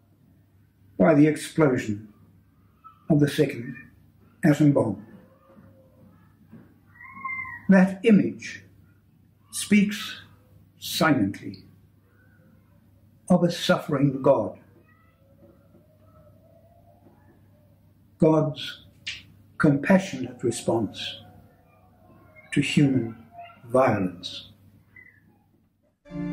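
An elderly man reads aloud calmly and slowly, close to a microphone, with long pauses.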